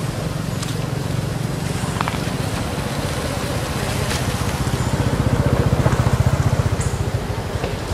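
A monkey walks through rustling leaves.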